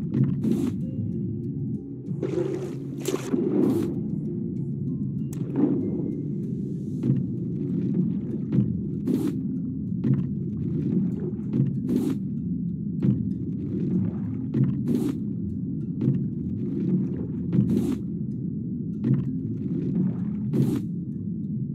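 Muffled bubbling underwater ambience hums steadily.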